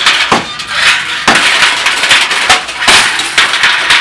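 A brick crashes against a metal wire cart.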